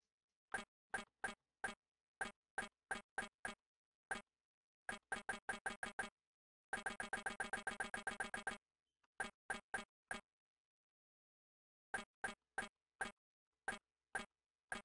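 A game menu makes short clicking ticks, sometimes in fast runs.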